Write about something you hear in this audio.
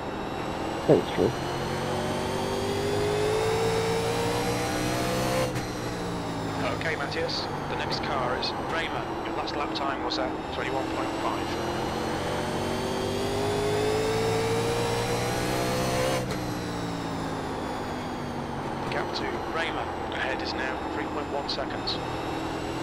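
A race car engine roars, rising in pitch down the straights and dropping as it slows into the turns.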